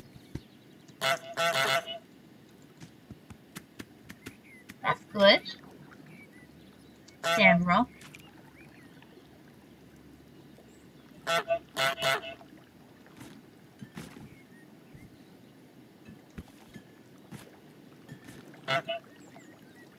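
A goose honks loudly, again and again.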